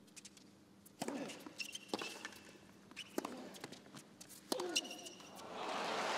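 Tennis balls are struck sharply with rackets in a rally.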